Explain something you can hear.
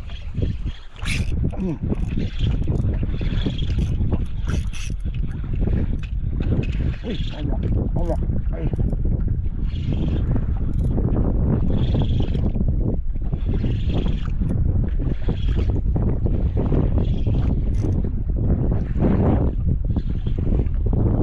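A fishing reel whirs and clicks as its handle is cranked in bursts.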